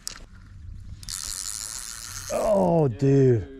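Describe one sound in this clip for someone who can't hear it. A fishing reel whirs as line spins out on a cast.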